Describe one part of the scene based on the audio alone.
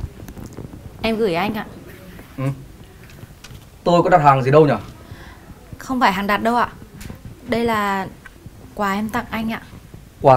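A young woman speaks warmly and nearby.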